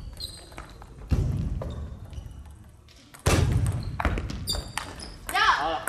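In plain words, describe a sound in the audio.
A ping-pong ball clicks back and forth on paddles and a table, echoing in a large hall.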